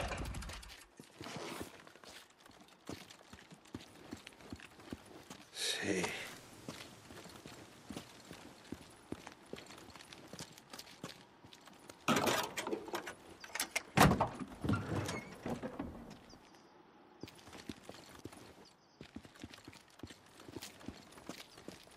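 Footsteps scuff on pavement.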